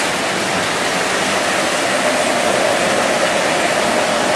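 A model train rumbles steadily along its tracks.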